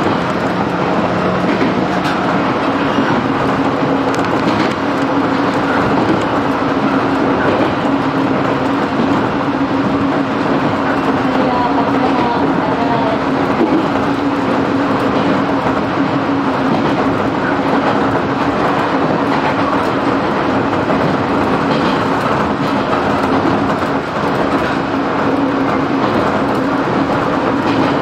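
A train rumbles and rattles steadily along the track.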